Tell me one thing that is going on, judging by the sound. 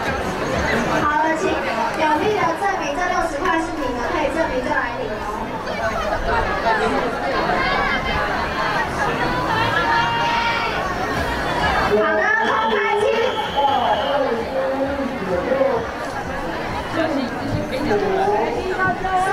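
Young children shout and cheer with excitement.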